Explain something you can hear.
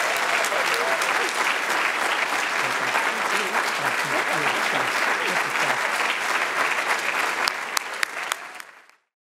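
A large crowd applauds loudly in an echoing hall.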